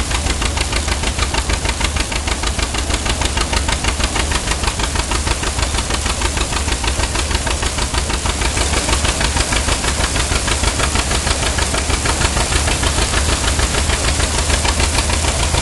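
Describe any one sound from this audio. A farm engine hums low and steady.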